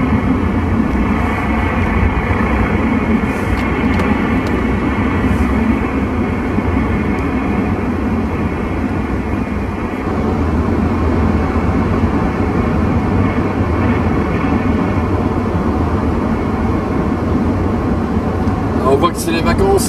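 A car's engine and tyres hum steadily on the road.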